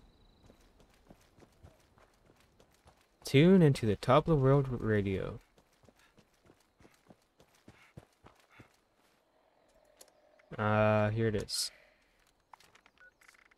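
Footsteps crunch softly on dry leaves and gravel.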